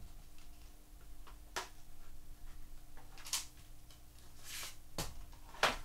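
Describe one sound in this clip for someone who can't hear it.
Plastic packaging crinkles and rustles in someone's hands.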